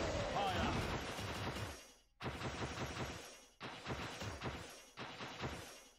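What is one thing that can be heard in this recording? Magic bolts crackle and zap.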